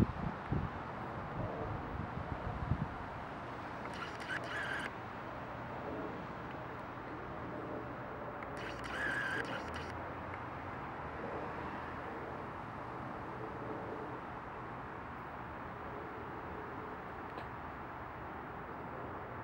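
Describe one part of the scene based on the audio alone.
Willow branches rustle and sway in the wind.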